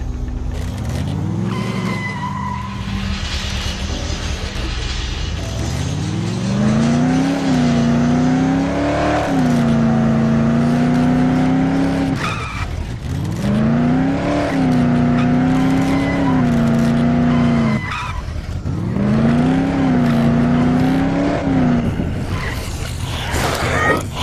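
A car engine revs hard, rising and falling in pitch as the car speeds along.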